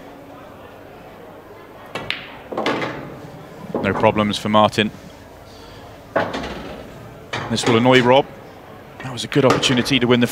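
Pool balls knock together and roll on the cloth.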